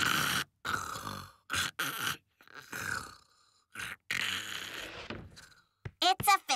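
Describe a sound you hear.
A man snores loudly in deep, rasping breaths.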